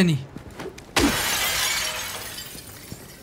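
Glass shatters loudly as a window is smashed.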